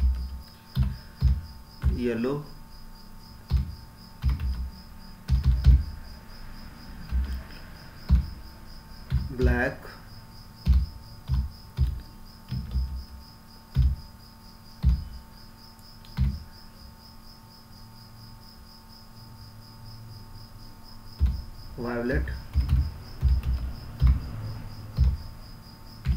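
Keys clack on a keyboard in quick bursts of typing.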